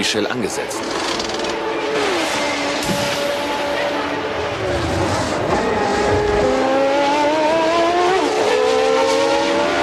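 A racing car engine roars and revs higher.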